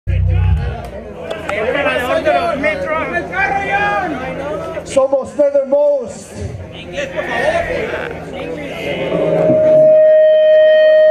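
A rock band plays loudly live outdoors.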